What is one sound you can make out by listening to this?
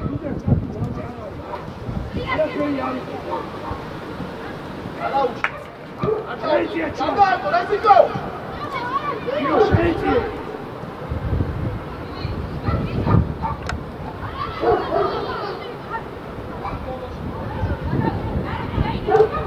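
Young players shout to each other across an open pitch.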